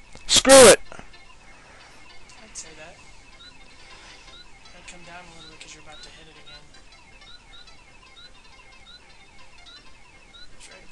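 Chiptune game music plays throughout.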